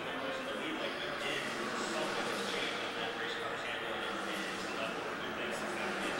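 Race cars roar past on a track, muffled through glass.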